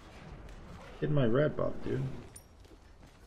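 A young man speaks briefly with animation into a close microphone.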